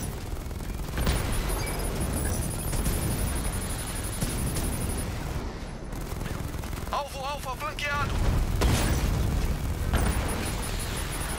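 Explosions boom and crash.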